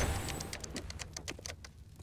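A bomb keypad beeps as keys are pressed.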